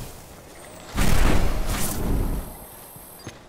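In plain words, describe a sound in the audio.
A blast booms loudly and rumbles away.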